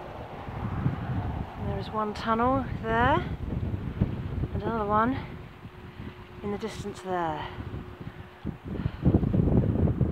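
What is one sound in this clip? Wind gusts roar outdoors and rustle through long grass.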